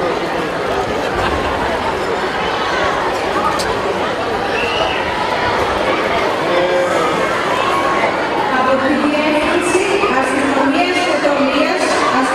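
A crowd of men and women murmurs and talks quietly outdoors.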